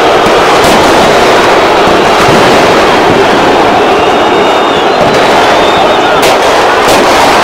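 Men shout angrily close by during a scuffle.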